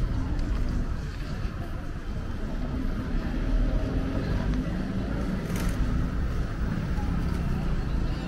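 Voices of passers-by murmur outdoors on a busy street.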